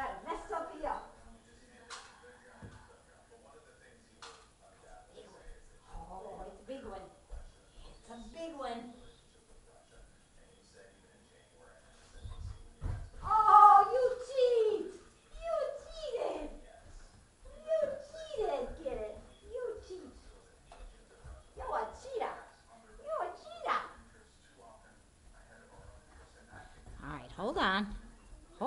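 A woman talks calmly to a dog, at some distance in a room.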